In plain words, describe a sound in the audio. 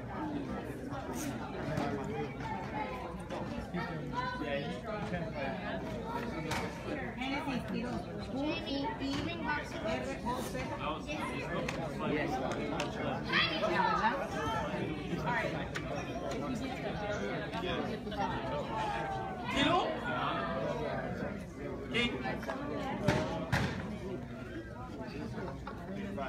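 Several adults chatter nearby in a room.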